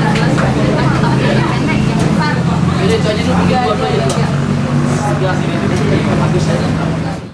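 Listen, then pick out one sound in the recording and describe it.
Young women chatter and laugh nearby.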